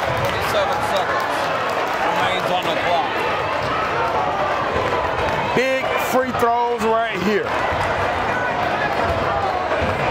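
A ball bounces on the court.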